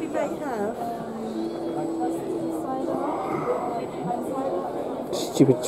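Several adults chat in a murmur of voices close by.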